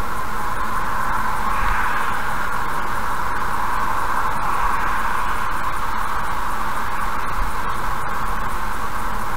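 Tyres hum steadily on a highway from inside a moving car.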